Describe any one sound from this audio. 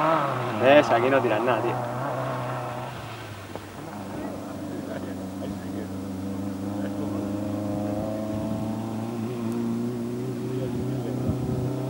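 Men talk with animation nearby outdoors.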